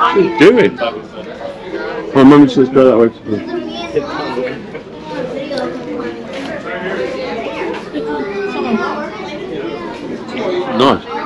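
A crowd of visitors chatters nearby in a covered, echoing space.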